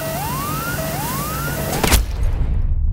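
A warning alarm in a helicopter whoops again and again, rising in pitch.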